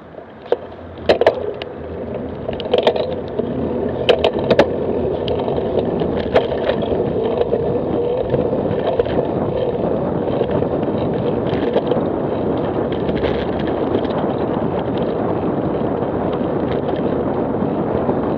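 Wind rushes steadily past the microphone, growing louder.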